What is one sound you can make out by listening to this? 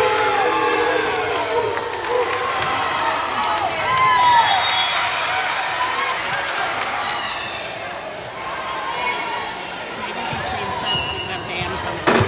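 Young women cheer and shout together in a large echoing gym.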